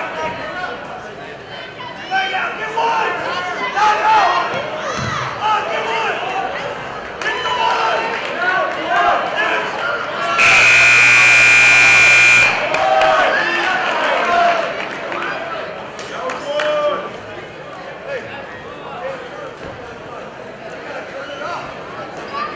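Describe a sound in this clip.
A crowd of spectators shouts and cheers in a large echoing gym.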